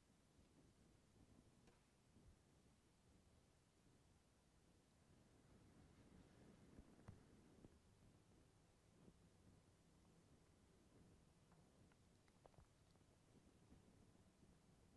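A young man speaks quietly and calmly through a microphone.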